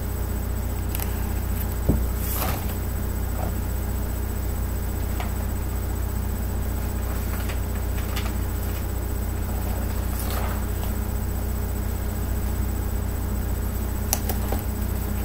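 A tablet case taps and rustles as a man handles it.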